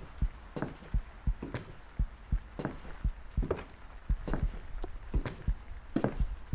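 Footsteps thud quickly and steadily across a wooden floor.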